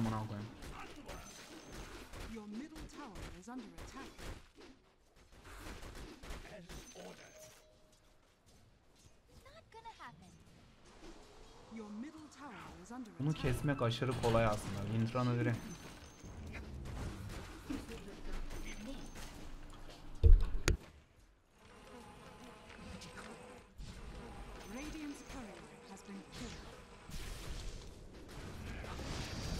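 Game sound effects of fighting clash and zap.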